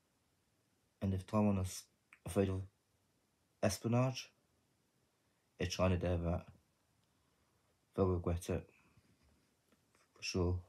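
A man speaks calmly and quietly, close to the microphone, in short phrases with pauses.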